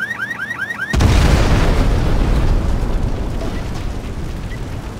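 A loud explosion booms with a long, rumbling echo.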